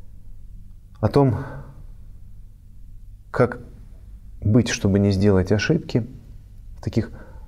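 A man speaks calmly and slowly into a close microphone, with pauses.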